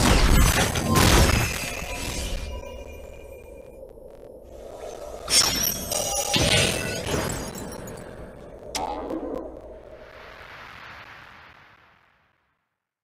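Bright game jingles and chimes play.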